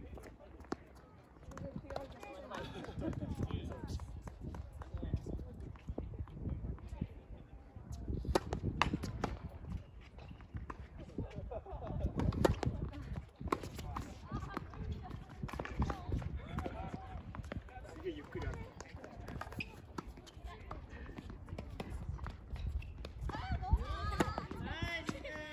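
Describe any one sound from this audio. Tennis balls are struck with rackets and bounce on a hard court.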